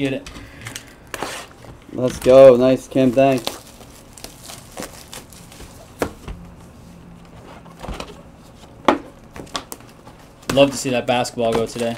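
A foil pack crinkles as hands tear it open and handle cards.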